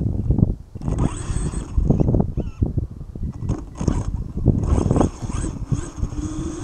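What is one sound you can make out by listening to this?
A small motor whines and revs in bursts.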